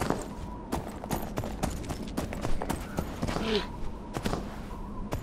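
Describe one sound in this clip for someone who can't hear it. Quick footsteps patter on dry ground.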